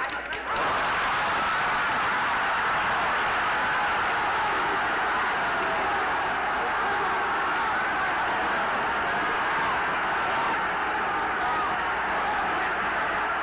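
A crowd cheers and shouts excitedly.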